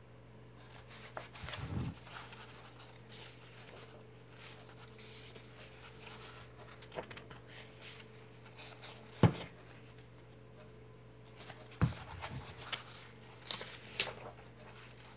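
Paper pages rustle and flap as a book is leafed through close by.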